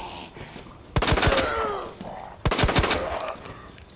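Gunshots bang loudly in quick bursts.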